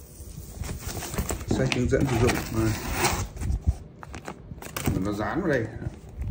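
Hands rustle and scrape against foam packing.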